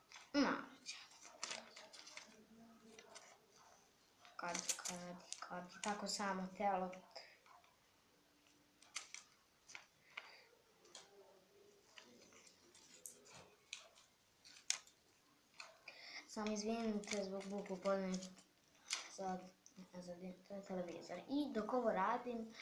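Paper crinkles and rustles in a girl's hands.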